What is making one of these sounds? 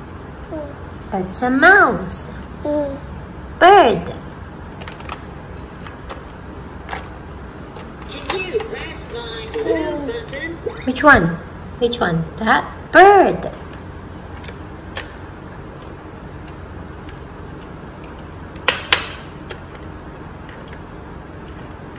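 Plastic toy parts click and knock together.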